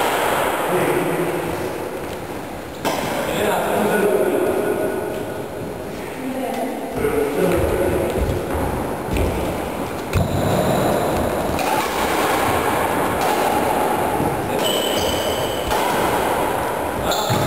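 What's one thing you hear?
Sports shoes squeak and shuffle on a wooden floor.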